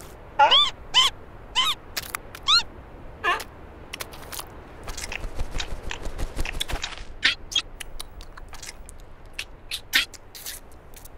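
A cartoon seal makes short, squeaky chirping sounds.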